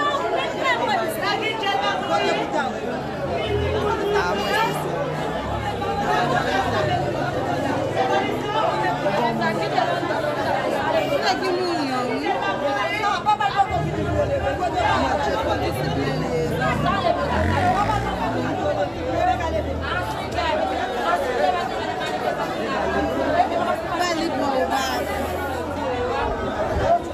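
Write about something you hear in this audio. A crowd of men and women talks loudly all at once, close by.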